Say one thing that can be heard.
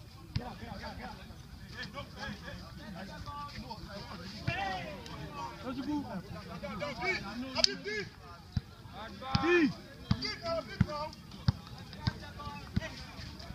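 Young men shout and call out to each other nearby, outdoors.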